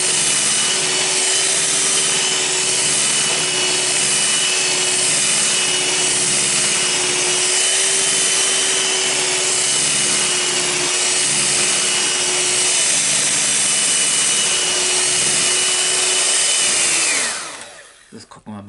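An electric hand mixer whirs steadily, whipping cream in a bowl, then winds down and stops.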